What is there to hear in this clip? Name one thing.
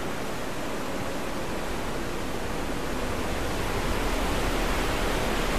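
A waterfall roars steadily, growing slowly louder.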